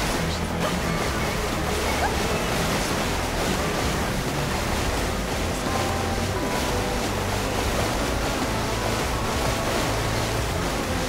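A jet ski engine drones steadily.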